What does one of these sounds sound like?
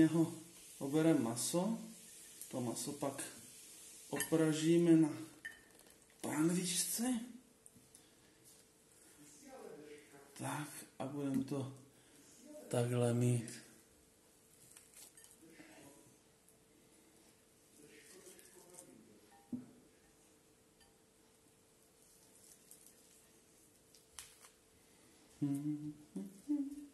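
Hands tear apart cooked chicken with soft, wet ripping sounds.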